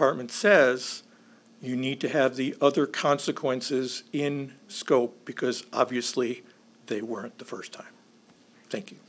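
An older man speaks calmly into a microphone over a loudspeaker in a large room.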